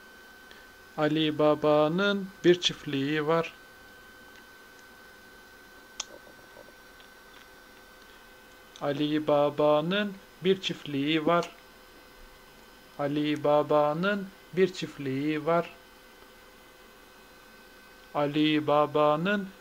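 A man talks softly and playfully up close.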